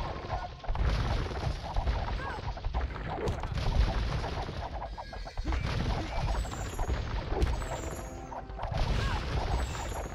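Swords clash and soldiers fight in a noisy battle.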